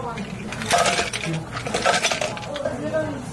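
Ice cubes clatter into a plastic cup.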